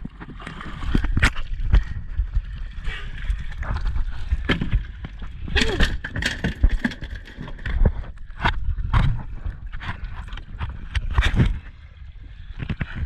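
Water splashes and knocks against a boat close by.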